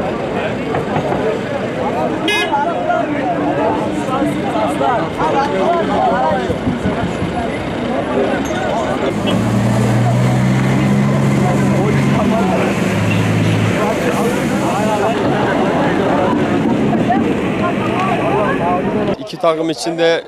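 A crowd of young men chatters and shouts outdoors.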